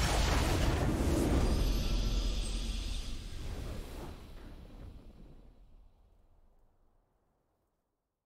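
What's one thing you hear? A triumphant victory fanfare from a video game swells and then fades away.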